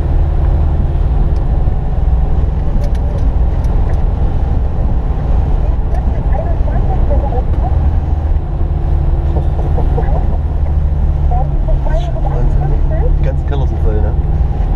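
A car engine hums steadily as the car drives slowly.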